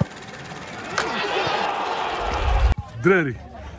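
A stadium crowd roars and cheers.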